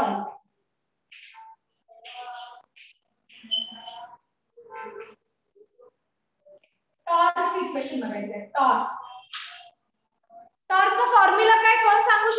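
A young woman speaks clearly and with animation, close to a microphone.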